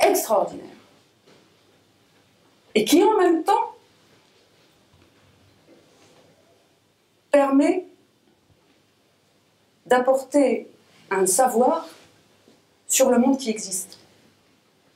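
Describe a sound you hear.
A middle-aged woman speaks with animation in short bursts, close to a microphone.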